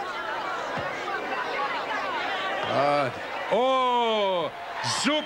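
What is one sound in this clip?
A crowd cheers and shouts loudly in a large arena.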